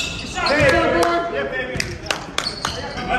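A basketball bounces on a hard floor, echoing in a large hall.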